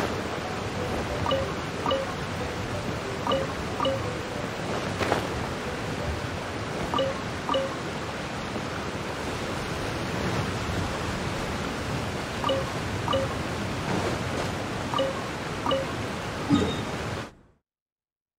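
A character's footsteps patter over wood and grass.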